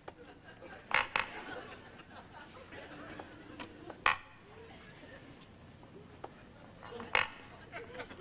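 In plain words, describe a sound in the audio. A chess piece knocks sharply on a wooden board.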